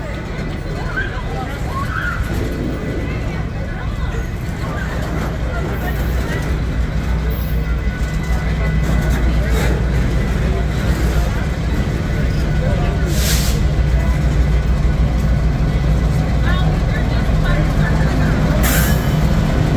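A freight train rumbles past close by, with steel wheels clattering on the rails.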